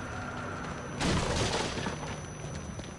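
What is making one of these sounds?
Wooden boards crash and splinter close by.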